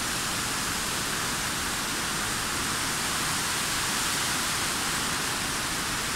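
A mountain stream rushes steadily below.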